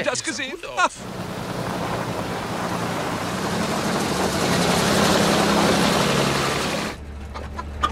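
An old bus engine rumbles as the bus drives along.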